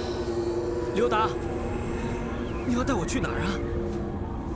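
A young man calls out questioningly.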